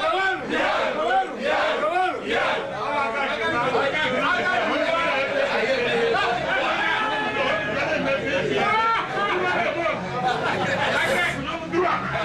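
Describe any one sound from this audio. A man speaks loudly and with animation.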